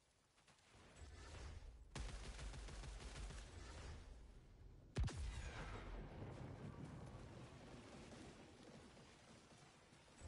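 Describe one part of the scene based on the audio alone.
Gunfire rattles and crackles in a video game.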